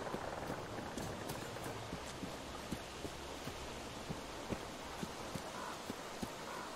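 Footsteps crunch on dry ground at an even pace.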